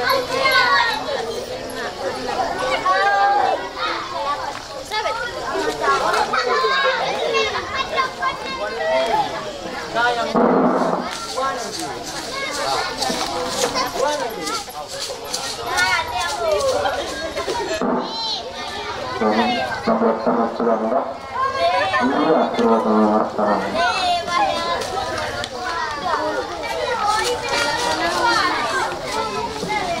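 A crowd of men and women talks and calls out loudly nearby.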